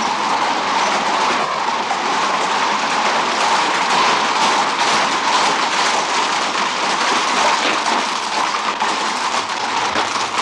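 Horses' hooves clatter as they trot on cobblestones.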